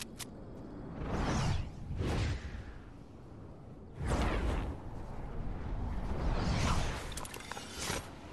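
Wind rushes loudly in swelling gusts.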